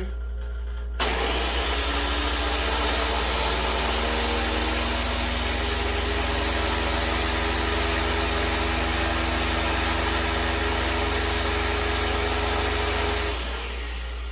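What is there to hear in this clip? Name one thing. A blender whirs loudly and steadily, then stops.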